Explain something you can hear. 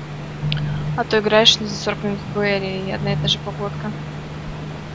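A young woman speaks casually into a microphone.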